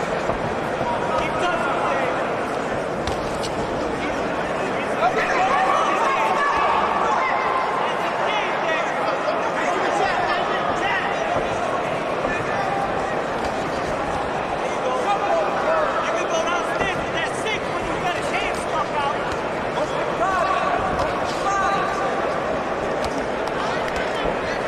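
Boxing gloves thud against a body and head.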